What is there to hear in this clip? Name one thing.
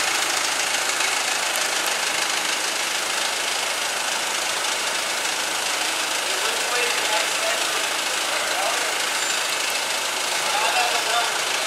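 A forklift engine hums steadily as the forklift moves slowly.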